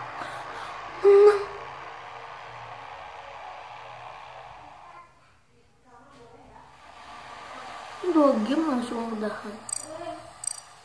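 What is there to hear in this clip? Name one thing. A young boy speaks close to a microphone with animation.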